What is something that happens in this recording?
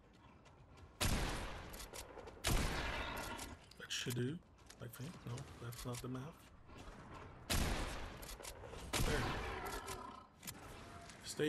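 Gunshots ring out in short, loud bursts.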